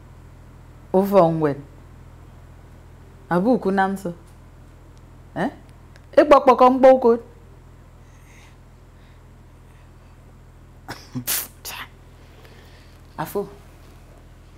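A woman speaks with surprise and animation, close by.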